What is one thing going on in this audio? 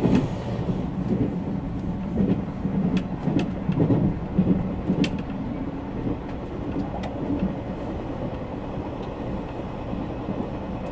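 An electric train rumbles along the track, heard from inside the cab.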